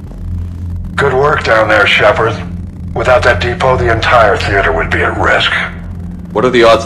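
An older man speaks calmly and gravely.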